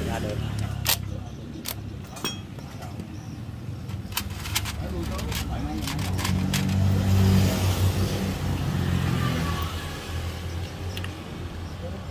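Metal parts clink and tap as a hand handles them.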